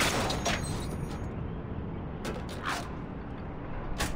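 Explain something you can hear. A metal panel door creaks open.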